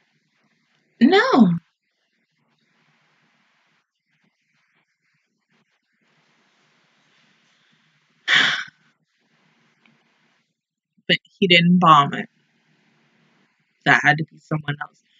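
A young woman speaks close to a microphone in short bursts, with long pauses.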